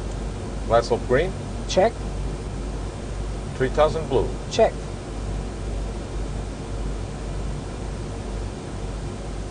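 A low, steady hum of aircraft engines drones on.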